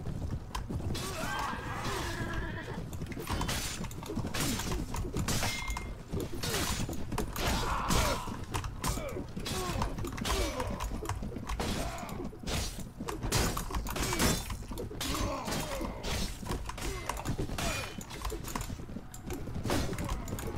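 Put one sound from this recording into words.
Swords and weapons clash and strike in a battle.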